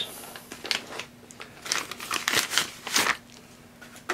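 Plastic wrapping crinkles and rustles in someone's hands.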